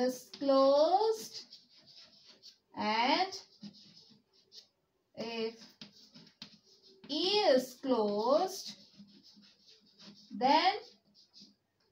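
A young woman speaks calmly and clearly, close by, in short phrases.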